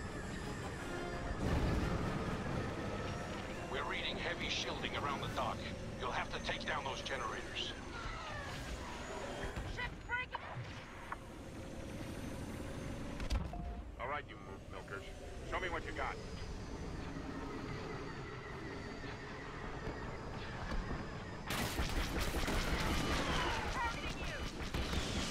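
A starfighter's engines roar steadily.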